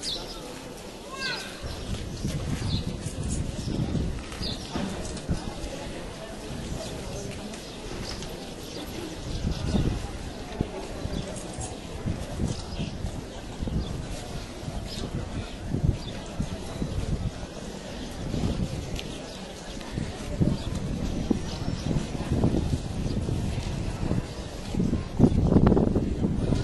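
A crowd of men and women murmurs and chatters nearby outdoors.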